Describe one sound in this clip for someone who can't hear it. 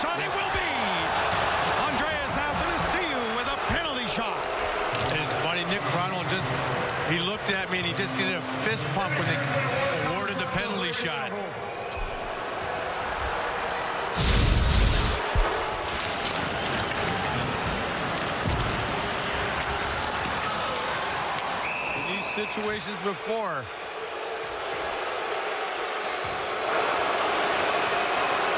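A large crowd murmurs and cheers.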